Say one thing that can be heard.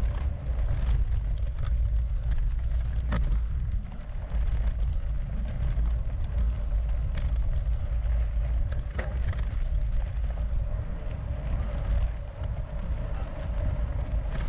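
Wind rumbles steadily against a moving bicycle.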